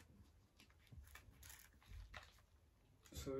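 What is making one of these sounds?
Small plastic parts click and rattle in a man's hands.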